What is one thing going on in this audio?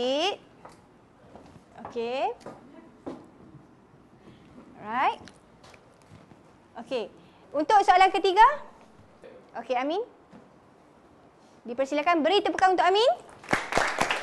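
A woman speaks clearly and calmly, as if teaching a class.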